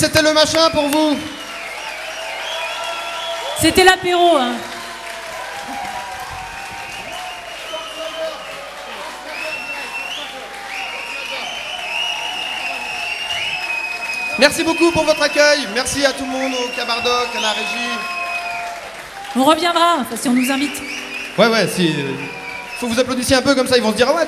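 A live band plays an upbeat song with guitars, horns and percussion in a large hall.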